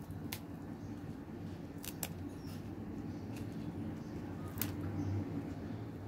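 Crisp lettuce leaves rustle softly under fingers.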